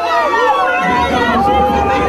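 Women cheer and shout excitedly in a lively crowd.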